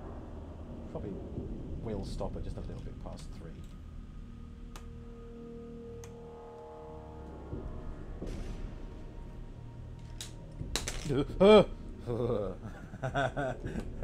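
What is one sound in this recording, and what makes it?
Small plastic toy bricks click and clatter.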